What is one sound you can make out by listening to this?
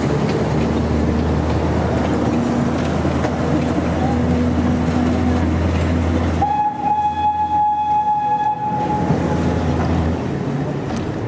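A small locomotive tram rumbles along the rails with a low engine drone.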